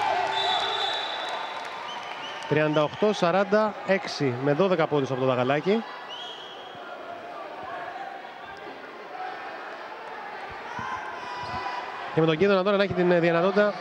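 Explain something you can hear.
Sneakers squeak on a hardwood court in a large echoing hall.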